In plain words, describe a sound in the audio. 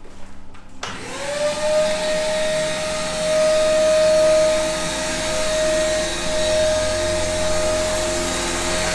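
A spray machine hums steadily and hisses.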